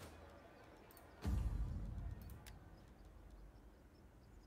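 A soft click sounds.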